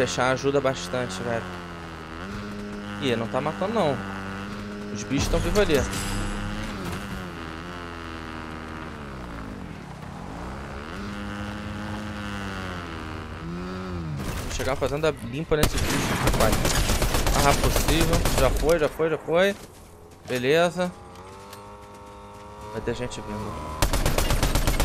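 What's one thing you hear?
A man talks into a microphone.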